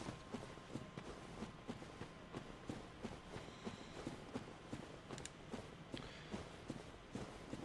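Footsteps crunch steadily through grass and leaves.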